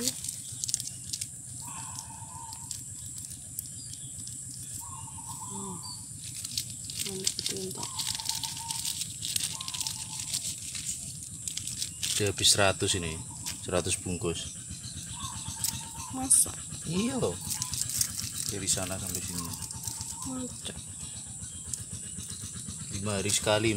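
A small plastic bag crinkles and rustles in someone's hands.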